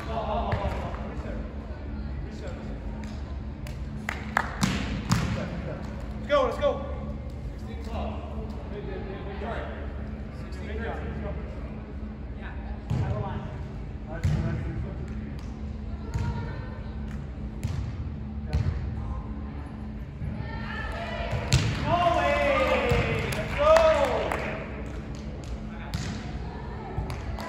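Men call out and shout to each other in a large echoing hall.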